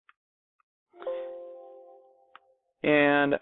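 A computer alert chime sounds once.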